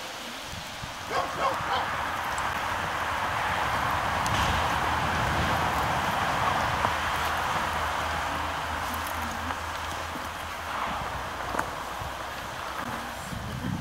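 Footsteps crunch on a dirt path strewn with twigs.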